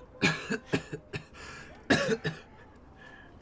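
A young man laughs softly close by.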